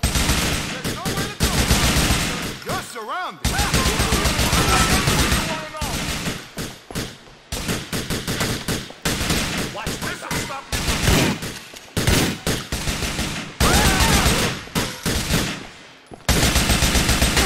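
A rifle fires rapid bursts of shots that echo through a large hall.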